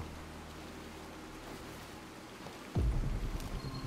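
Branches rustle and scrape as someone pushes through bushes.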